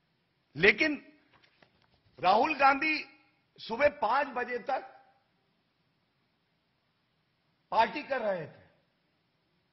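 A man speaks emphatically into a microphone, in short bursts with pauses.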